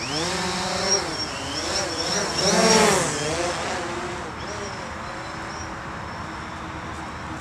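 A small drone's motors whine, rising and falling in pitch and then steadying.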